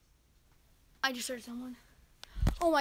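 A young boy speaks up close.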